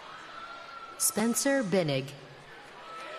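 A young woman in the crowd screams and cheers loudly.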